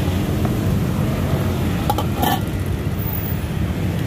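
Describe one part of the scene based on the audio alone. A metal lid clanks against a pot.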